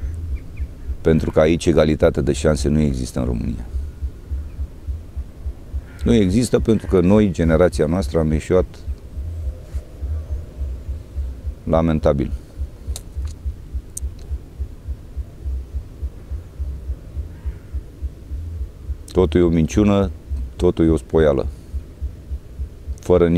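A middle-aged man speaks calmly into a clip-on microphone, close by.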